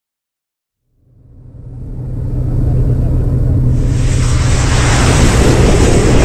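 An aircraft engine drones loudly and steadily, fading in from silence.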